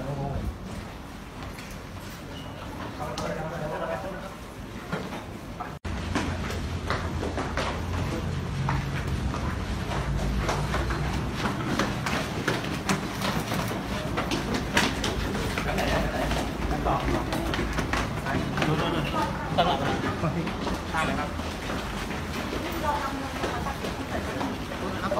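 A crowd of men and women talk over one another close by.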